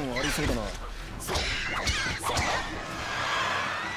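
A sword swishes through the air in quick slashes.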